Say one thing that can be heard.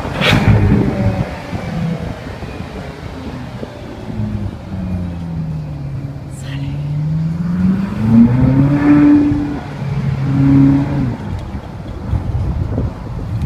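A car engine hums and revs as the car drives along.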